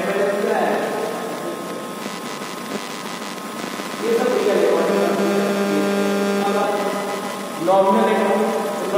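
A young man speaks calmly and clearly, as if explaining, in a room with a slight echo.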